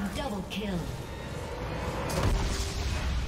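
Magical spell effects crackle and burst in a busy fight.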